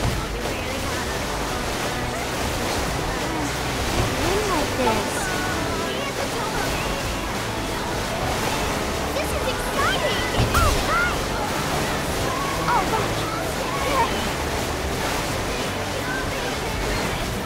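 Water splashes and sprays against a jet ski.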